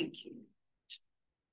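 A man speaks a few words nearby.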